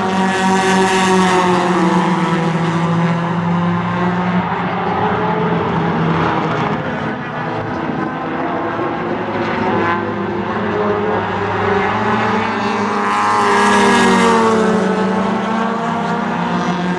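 Race car engines roar loudly around a track, revving up and down.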